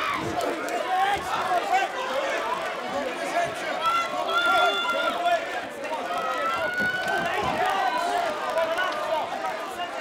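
A large crowd cheers and shouts loudly in an echoing hall.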